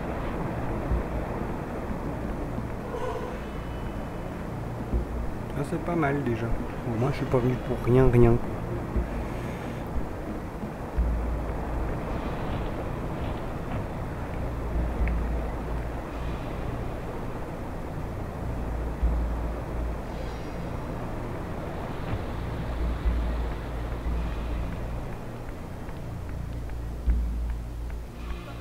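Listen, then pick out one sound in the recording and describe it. A glowing blade hums with a low, steady drone.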